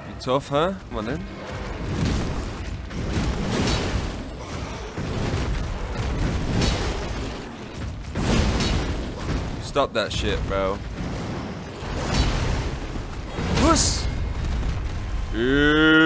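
Blades clash and strike hard in a fierce fight.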